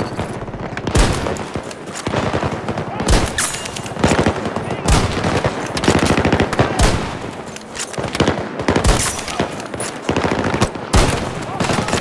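A rifle fires sharp, loud shots every couple of seconds.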